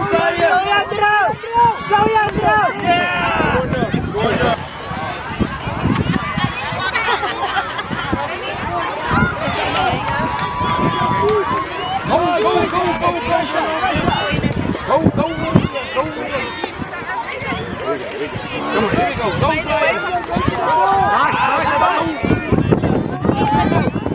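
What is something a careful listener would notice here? Adult spectators cheer and call out from the sideline.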